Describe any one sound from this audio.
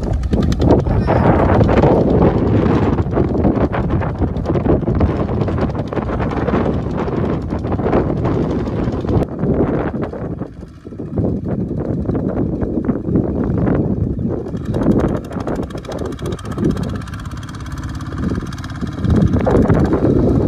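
A two-wheel tractor engine chugs loudly.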